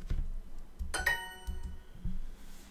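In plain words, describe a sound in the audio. A bright, short chime rings once.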